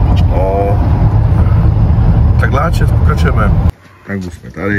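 A man talks with animation, close up, inside a car.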